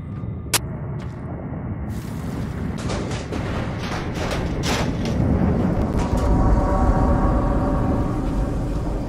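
A low drone rumbles steadily in the background.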